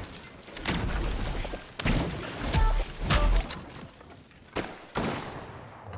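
Sharp knocks of a pickaxe striking a wall ring out.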